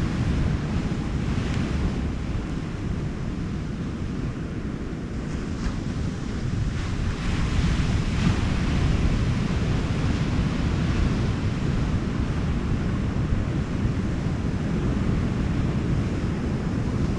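Ocean surf breaks and washes onto a sandy beach.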